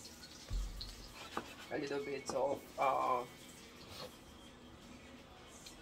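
A wooden spatula scrapes and stirs food in a metal pan.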